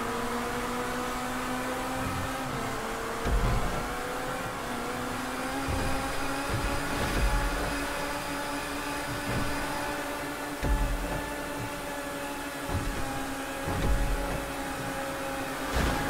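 A sports car engine roars steadily at high speed.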